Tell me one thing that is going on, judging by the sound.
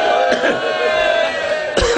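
A man in a crowd calls out loudly in approval.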